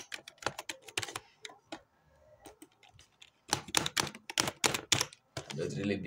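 Keys clatter quickly on a computer keyboard.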